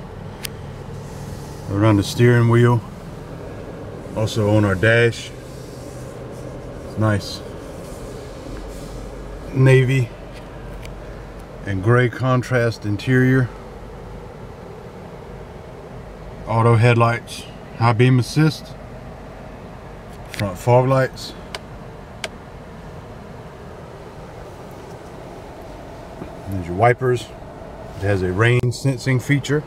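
A car engine hums quietly inside the cabin.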